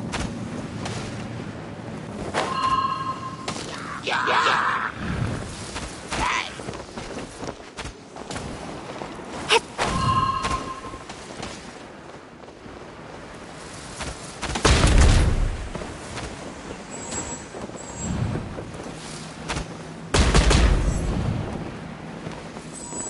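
Game sword slashes and hits clang in quick bursts.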